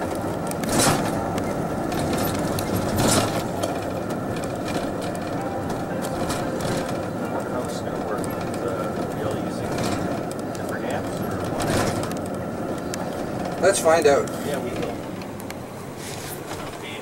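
Tyres roll over pavement.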